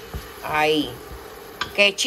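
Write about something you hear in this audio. A wooden spoon scrapes and stirs in a metal pot.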